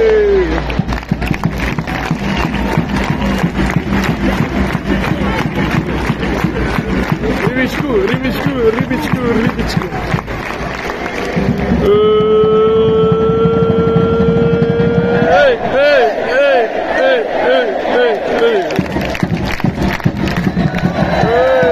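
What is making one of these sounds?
Fans clap their hands rhythmically.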